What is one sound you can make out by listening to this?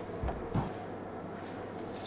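A spoon scrapes as it stirs soup in a pot.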